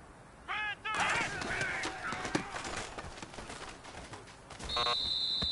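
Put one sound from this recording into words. Football players collide with dull thuds and clatter.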